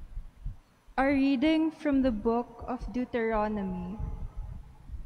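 A young woman reads aloud calmly into a microphone.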